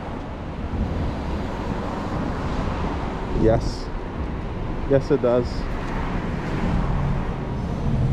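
Traffic hums along a nearby street.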